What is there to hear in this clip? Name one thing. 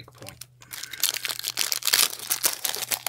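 A foil card wrapper crinkles and rustles close by.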